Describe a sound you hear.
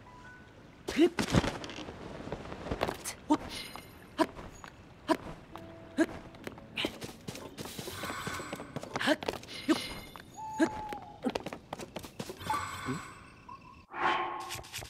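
A character scrambles and climbs over rock with scuffing thumps.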